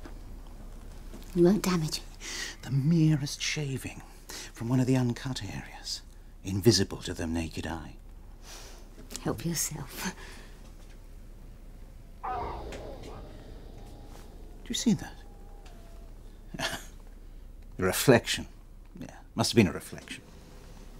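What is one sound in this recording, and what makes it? A woman speaks quietly and closely.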